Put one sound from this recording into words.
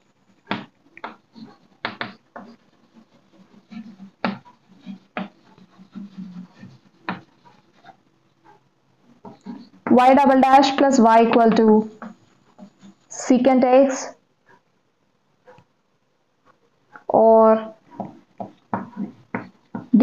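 Chalk taps and scratches on a blackboard in short strokes.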